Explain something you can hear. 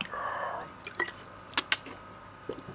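A man gulps down a drink close by.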